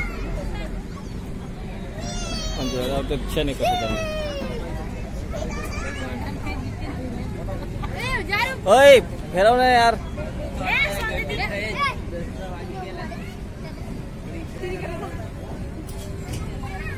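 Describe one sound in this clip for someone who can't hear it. A children's ride hums steadily as it turns.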